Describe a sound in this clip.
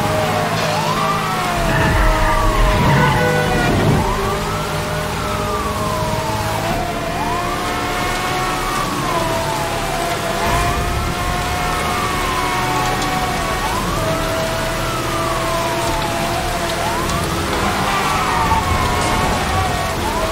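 Heavy rain hisses all around.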